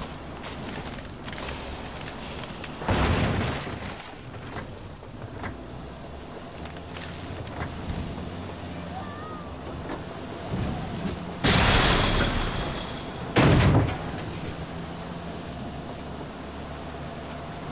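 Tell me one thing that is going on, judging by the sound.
Tyres crunch over dirt and bump on rough ground.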